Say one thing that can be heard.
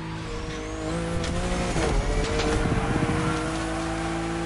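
Exhaust pops and bangs crackle from a car.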